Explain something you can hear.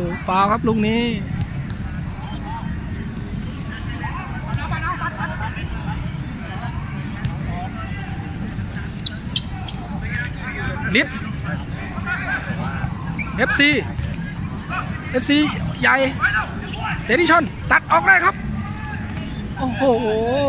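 Young men shout and call out across an outdoor court.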